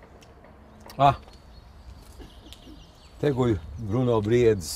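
An elderly man speaks calmly, close by, outdoors.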